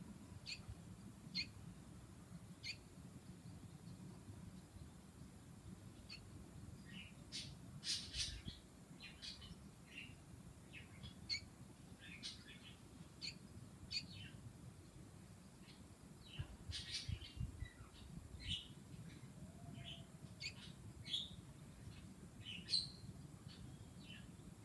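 A bird chirps in short, sharp calls close by.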